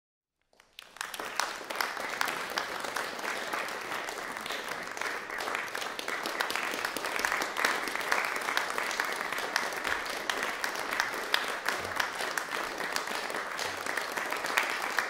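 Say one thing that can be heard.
An audience applauds steadily in a large hall.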